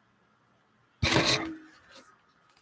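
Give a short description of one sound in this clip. An older woman picks up a cup with a clatter.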